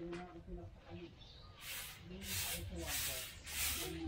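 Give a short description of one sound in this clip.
A broom sweeps across a hard floor with short scraping strokes.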